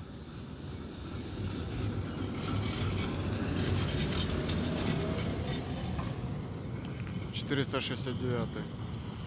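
A tram rumbles and rattles past close by on its rails, then fades into the distance.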